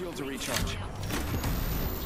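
A shield battery charges with a rising electronic whir.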